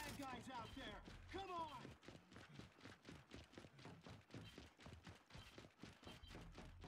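Heavy boots thud in quick, even running steps.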